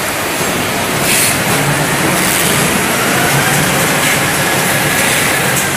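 Factory machinery hums and clatters steadily.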